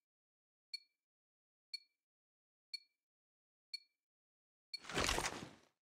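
A short electronic beep sounds once a second as a countdown.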